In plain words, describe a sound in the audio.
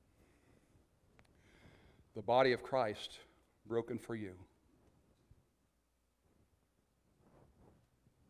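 An older man speaks calmly into a microphone.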